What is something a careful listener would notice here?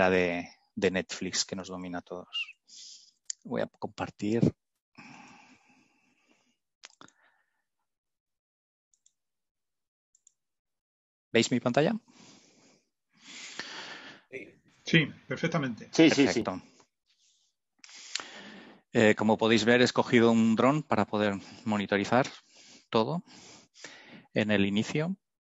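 A middle-aged man speaks calmly through a headset microphone over an online call, with pauses.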